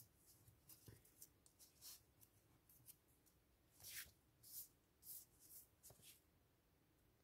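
A glue stick rubs across paper.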